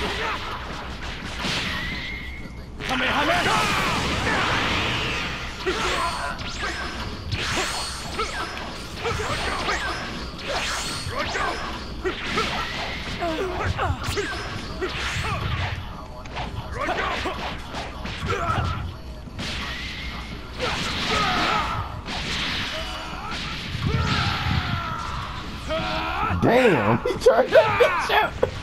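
Energy beams whoosh and crackle.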